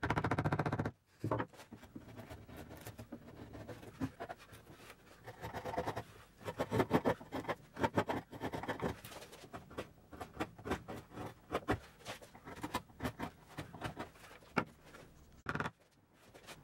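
A chisel scrapes and cuts into wood.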